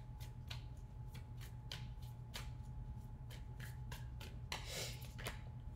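Cards flick and snap as they are shuffled by hand.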